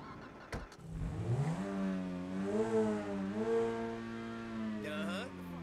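A car engine revs up and hums steadily while driving.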